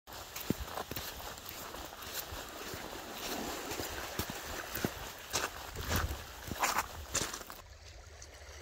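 Footsteps crunch on sand and pebbles.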